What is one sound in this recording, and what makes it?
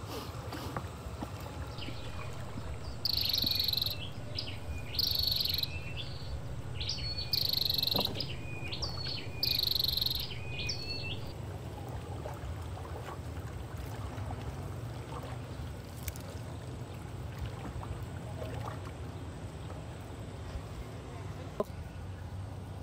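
A wet fishing net rustles and drips as it is pulled from the water.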